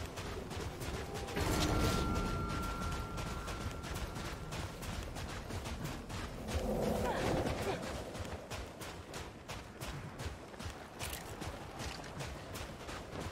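Footsteps run quickly over sand and dirt.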